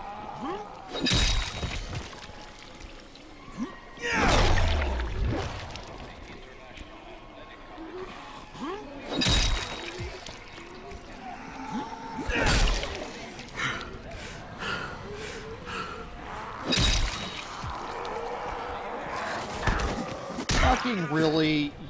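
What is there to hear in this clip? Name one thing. A heavy weapon swishes and smashes into bodies with loud thuds.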